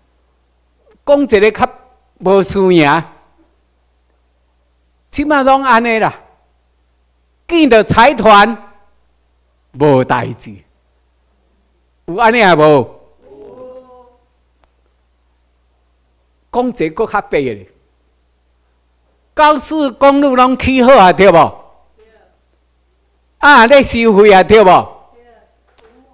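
An elderly man speaks through a microphone and loudspeakers in bursts, with pauses between phrases.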